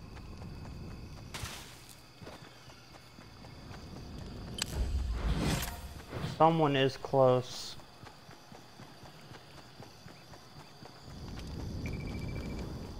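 Footsteps thud quickly on grass and dirt.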